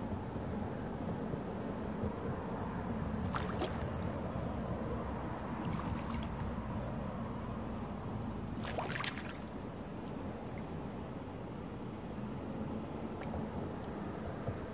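Water trickles steadily into a pond.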